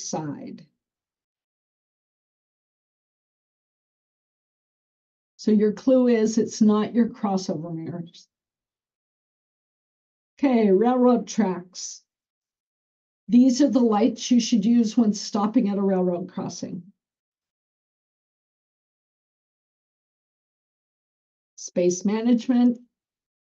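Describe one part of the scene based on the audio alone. An older woman speaks calmly through an online call, in short phrases with pauses.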